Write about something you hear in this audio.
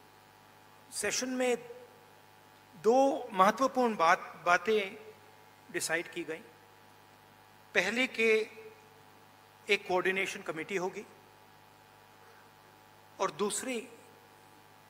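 A middle-aged man speaks calmly into a microphone in short phrases, with pauses.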